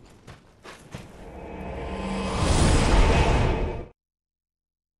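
A bonfire flares up with a rising roar.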